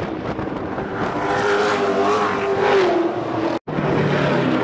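A race car engine roars loudly as the car speeds past close by.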